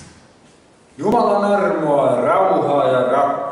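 An elderly man speaks into a microphone in a calm, preaching tone, with a slight room echo.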